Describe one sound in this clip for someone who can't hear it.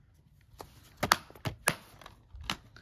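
A hand pats and taps on a disc case.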